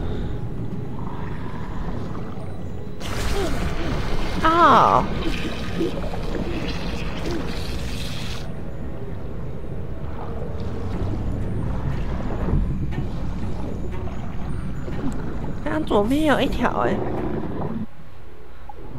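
A low, muffled underwater rumble goes on.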